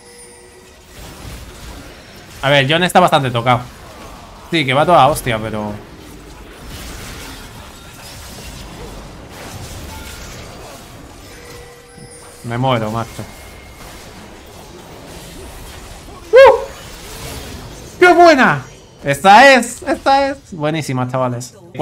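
Game spell effects whoosh and clash in the background.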